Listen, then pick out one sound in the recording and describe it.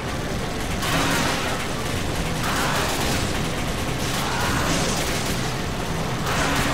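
Water surges and splashes loudly.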